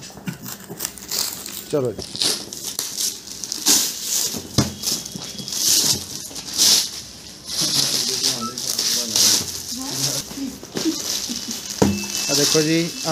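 Plastic wrap crinkles and rustles as hands pull it off a box.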